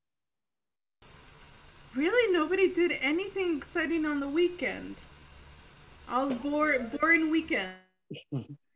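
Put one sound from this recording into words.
A woman talks with animation over an online call.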